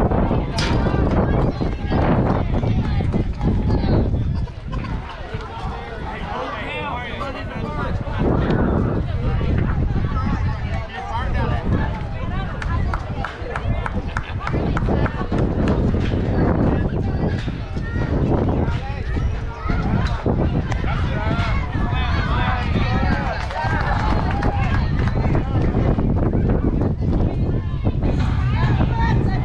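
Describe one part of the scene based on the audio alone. Young girls shout and cheer across an open field.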